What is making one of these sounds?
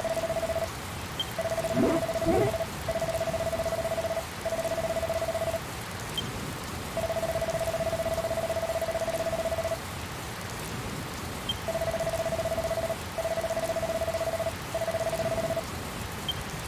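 A steady electronic beep sounds in short bursts.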